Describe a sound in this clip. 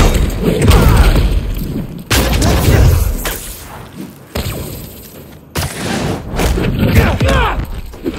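Punches and blows land with heavy thuds and whooshes.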